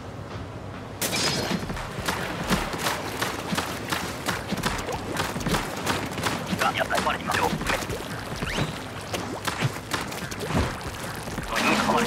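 Rapid shots fire and splash, over and over.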